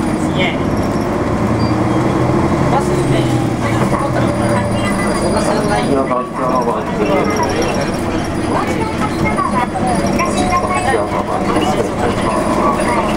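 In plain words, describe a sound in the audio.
A vehicle engine rumbles steadily while driving along a street.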